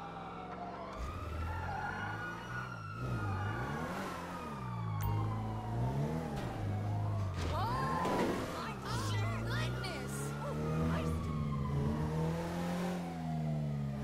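A car engine hums and revs as the car drives off.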